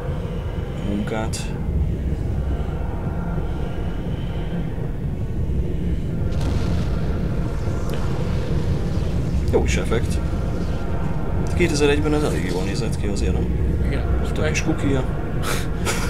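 A deep rumbling hum drones steadily.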